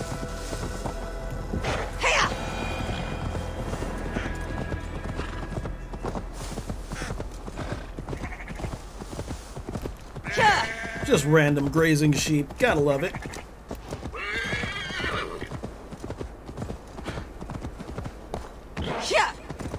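Horse hooves thud on grass.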